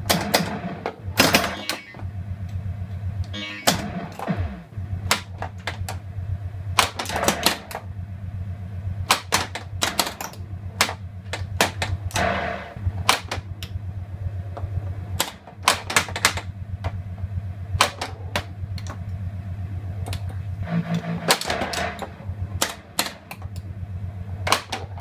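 A pinball machine's bumpers and flippers knock and clack sharply.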